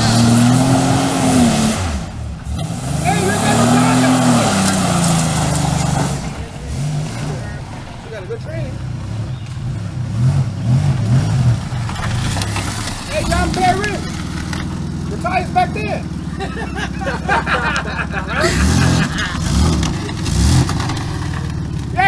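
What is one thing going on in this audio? A van engine revs hard, rising and falling in pitch several times.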